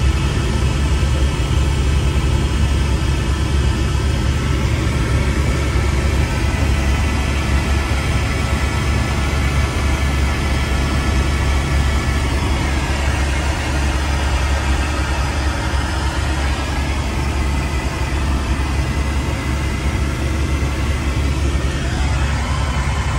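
A helicopter engine and rotor roar loudly and steadily from inside the cabin.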